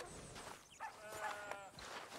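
A horse whinnies briefly.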